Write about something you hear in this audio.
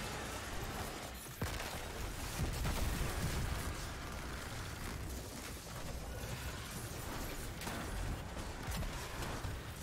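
Electric crackling bursts from video game powers.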